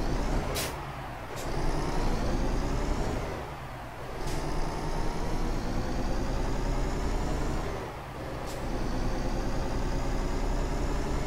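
A truck engine drones steadily, dipping and rising again as gears change.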